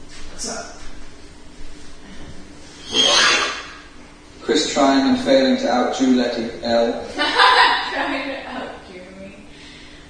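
A woman talks loudly at a distance in an echoing room.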